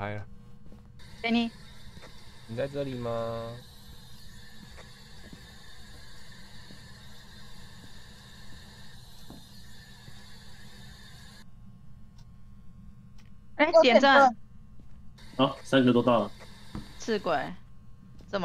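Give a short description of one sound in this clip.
A handheld radio scanner hisses with crackling static as it sweeps through stations.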